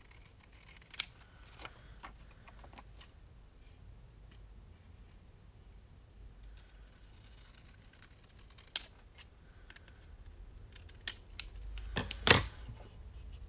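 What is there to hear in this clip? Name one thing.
Paper taps against a table.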